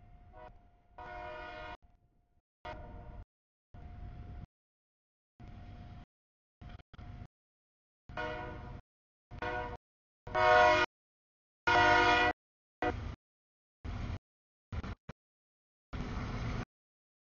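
A train horn blows in loud, repeated blasts close by.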